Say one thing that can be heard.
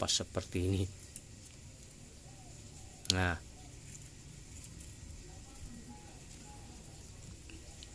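Fingers rub and scrape against the bark of a small tree trunk.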